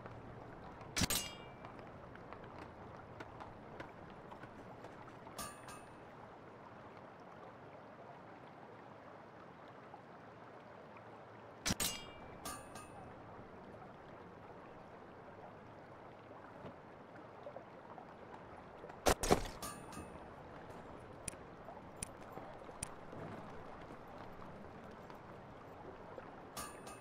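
Soft game menu clicks and chimes sound now and then.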